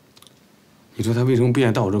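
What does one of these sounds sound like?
A middle-aged man asks a question calmly, close by.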